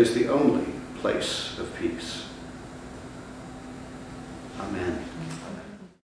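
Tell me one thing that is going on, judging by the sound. A man reads aloud calmly through a microphone, slightly muffled.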